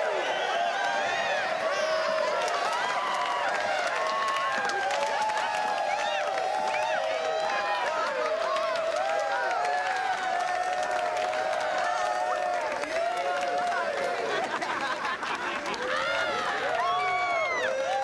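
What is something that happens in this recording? A large crowd of men and women cheers and whoops loudly.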